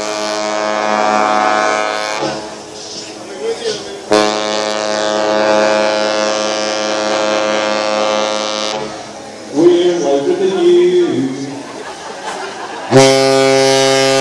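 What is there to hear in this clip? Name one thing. A ship's horn blasts loudly in long, deep, steady blows.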